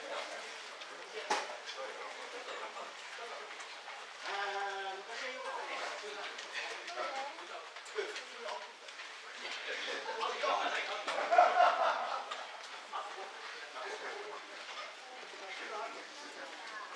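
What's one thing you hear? A crowd of adults murmurs and chatters in a large echoing hall.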